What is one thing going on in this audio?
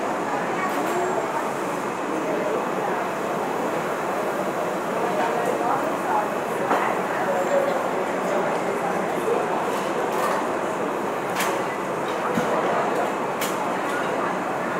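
A snack bag crinkles and rustles.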